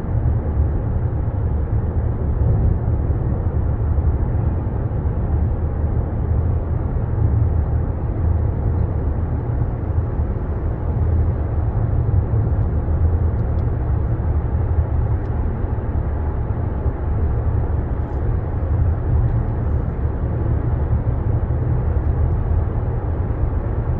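A car's engine and tyres rumble steadily while driving through an echoing tunnel.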